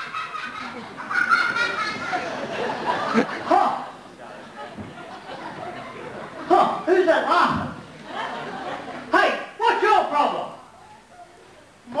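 A second man answers loudly across the stage.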